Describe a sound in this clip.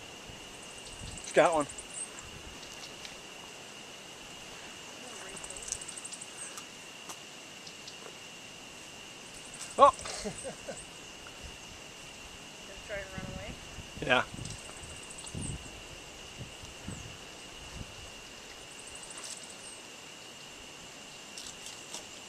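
A small animal rustles and scratches through dry leaves on the ground.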